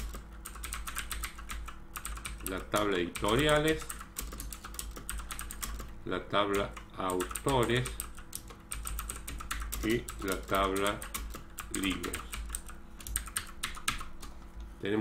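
Keys clatter quickly on a keyboard.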